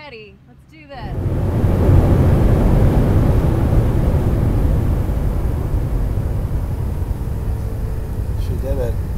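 An airplane cabin roars with a steady engine rumble.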